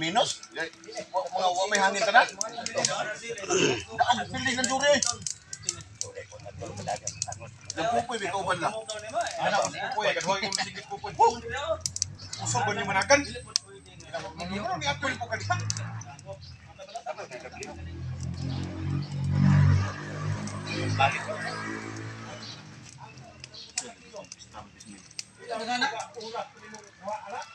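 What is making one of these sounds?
Several men talk casually outdoors, close by.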